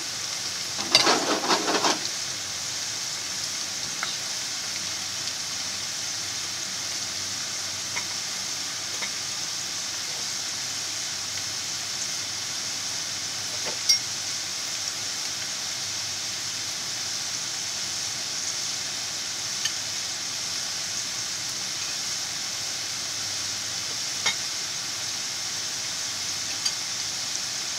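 Hot oil pops and crackles now and then.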